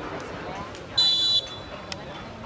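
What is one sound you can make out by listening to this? A referee blows a short whistle.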